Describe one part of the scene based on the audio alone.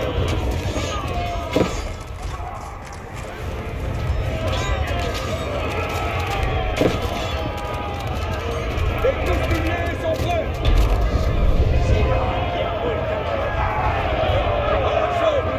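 A crowd of men shout and yell in battle.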